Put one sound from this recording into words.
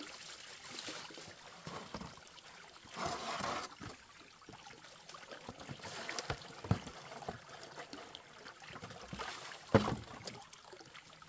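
Water splashes and trickles in a plastic basin.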